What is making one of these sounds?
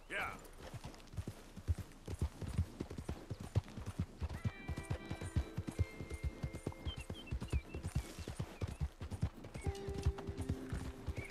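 Hooves thud in a quick gallop on a dirt trail.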